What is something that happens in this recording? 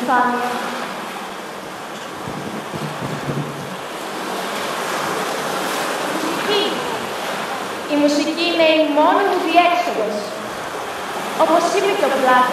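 A young woman sings a melody in a large hall.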